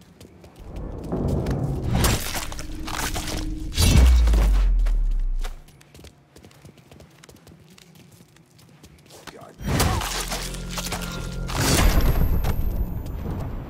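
Heavy blows thud in a close scuffle.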